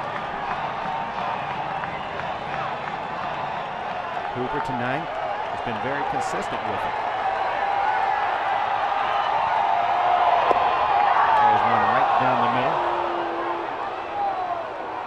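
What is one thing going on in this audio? A large crowd murmurs and cheers outdoors.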